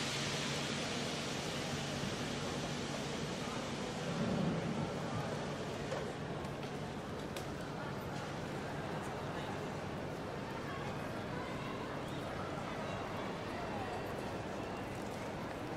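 A busy crowd murmurs and footsteps echo in a large echoing hall.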